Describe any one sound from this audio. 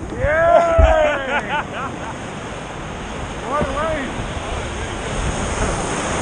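Sea water sloshes and splashes close by, outdoors.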